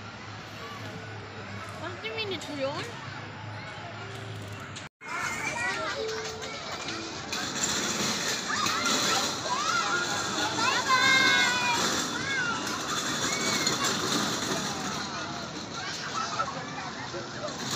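A crowd of people chatter in the background outdoors.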